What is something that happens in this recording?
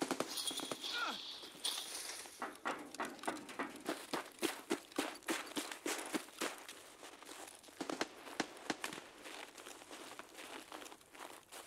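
Footsteps crunch quickly over snow and gravel.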